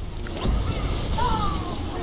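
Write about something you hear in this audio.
Electric bolts crackle and zap in a game battle.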